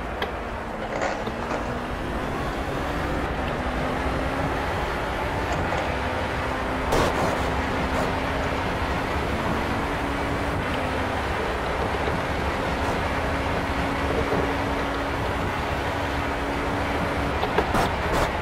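An open-wheel racing car engine accelerates through the gears.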